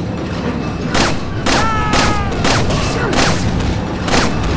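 Gunshots ring out loudly, one after another.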